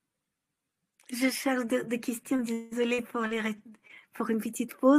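A woman speaks with animation close to a microphone, heard through an online call.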